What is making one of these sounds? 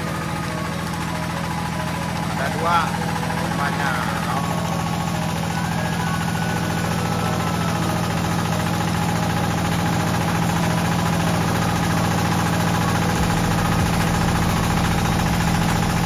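An engine runs with a steady loud drone close by.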